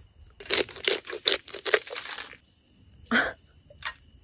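A pepper grinder crackles as it is twisted.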